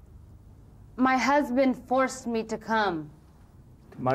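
A middle-aged woman speaks nearby in a complaining tone.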